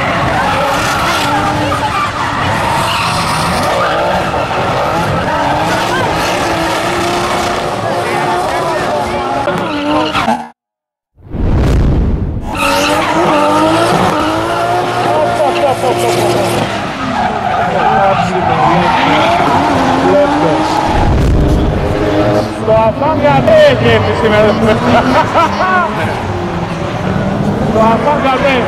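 Car engines roar and rev hard.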